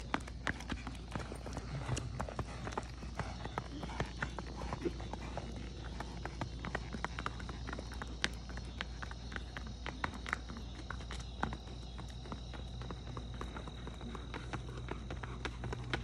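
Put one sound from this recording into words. Horse hooves clop rapidly on pavement.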